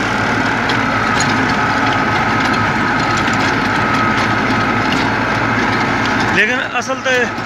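A tractor engine rumbles steadily close by.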